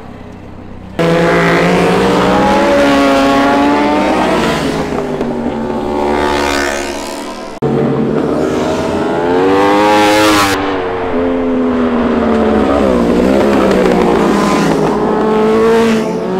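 Sport motorcycle engines rev loudly and roar past, rising and falling in pitch.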